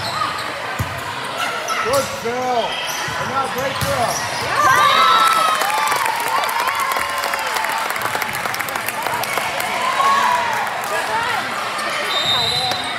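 Sneakers squeak sharply on a hard court floor.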